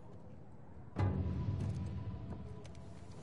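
A heavy thud lands on a wooden floor.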